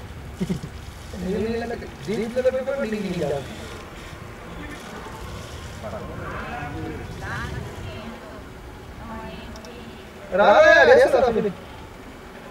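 Men on an open field call out to each other from a distance.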